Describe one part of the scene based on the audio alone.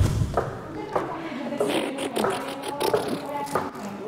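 Heels click on stairs.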